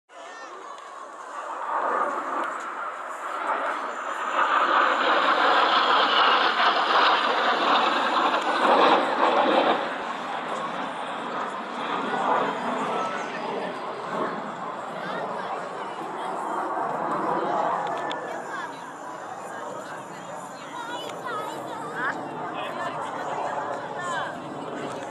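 A jet plane roars overhead, loud at first and then slowly fading as it climbs away.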